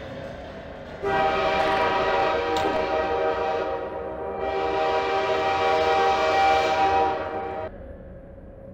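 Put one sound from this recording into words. Train engines roar loudly close by, with a steady droning hum.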